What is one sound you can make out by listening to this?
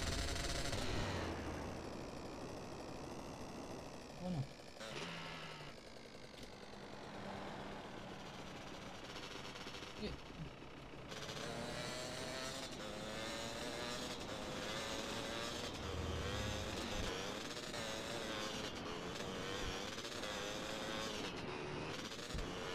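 A motorcycle engine drones and revs steadily.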